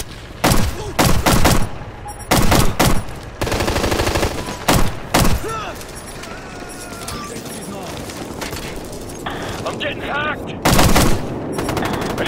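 Gunfire rattles in loud, rapid bursts.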